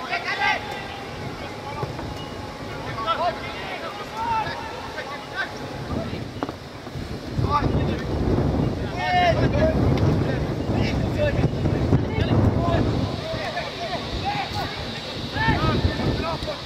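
Men and women in a crowd of spectators chat nearby outdoors.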